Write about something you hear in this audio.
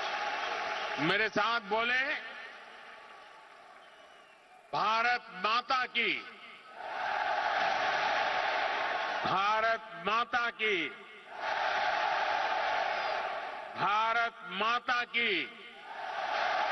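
An elderly man speaks slowly and emphatically through a microphone and loudspeakers.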